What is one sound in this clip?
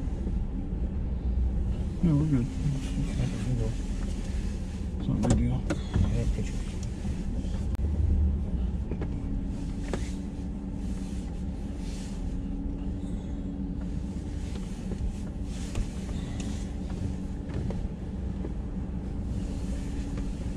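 Tyres roll and hiss over a wet road.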